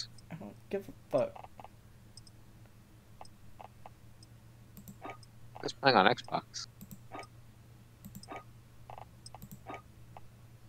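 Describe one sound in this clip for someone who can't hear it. Soft interface clicks tick as menu selections change.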